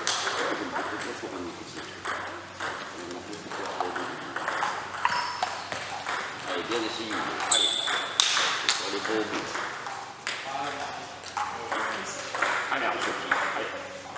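Table tennis balls click rapidly on paddles and tables, echoing in a large hall.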